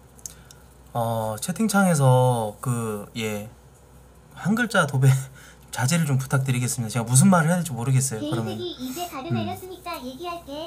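A young man talks calmly and close to a microphone.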